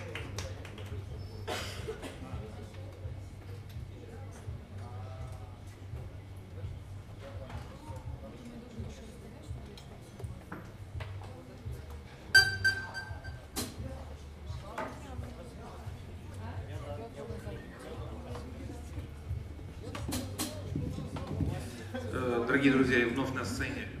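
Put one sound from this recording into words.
Drums and cymbals are tapped lightly.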